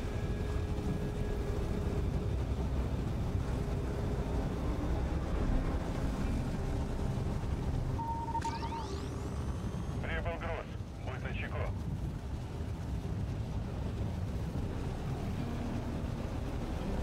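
Tank tracks grind over the ground.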